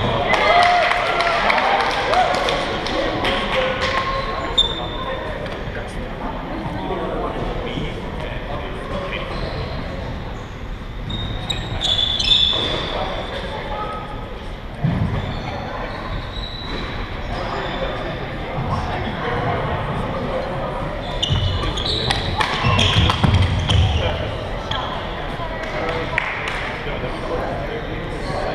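Young people chatter and shout around a large echoing hall.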